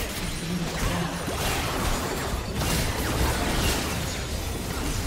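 Game spell effects crackle and whoosh in a busy fight.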